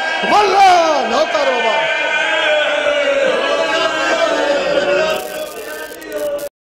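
A man chants in a loud, wailing voice through a microphone and loudspeakers.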